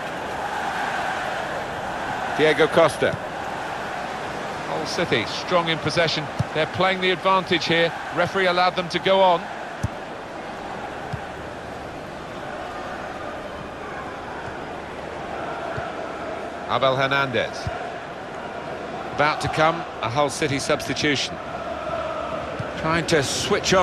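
A large stadium crowd murmurs steadily in the distance.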